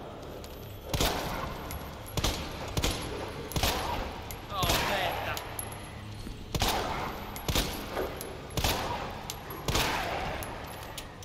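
Pistol shots ring out sharply, one after another, with a short echo.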